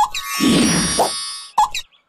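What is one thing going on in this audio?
A young girl's cartoon voice squeaks and chatters.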